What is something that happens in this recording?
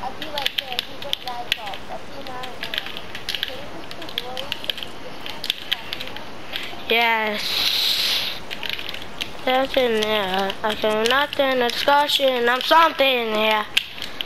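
Game building pieces snap into place with quick, sharp clicks.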